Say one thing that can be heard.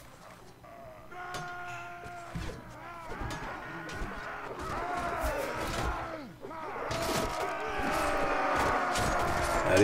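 Metal weapons clang and ring against shields.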